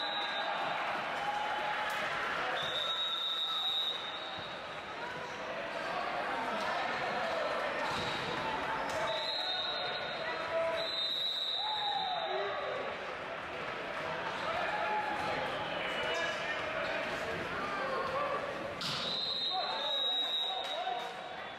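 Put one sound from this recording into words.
A volleyball is struck with sharp thuds.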